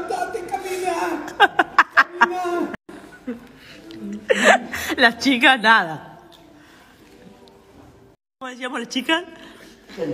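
An elderly woman talks with animation close by.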